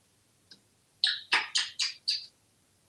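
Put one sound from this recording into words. A parrot whistles in quick short chirps.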